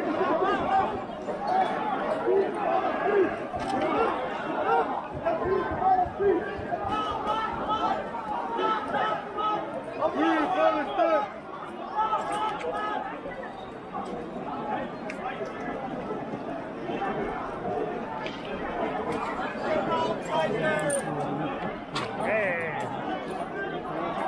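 A crowd of men and women shout and chant loudly outdoors.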